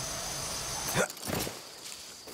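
A heavy thud sounds on landing.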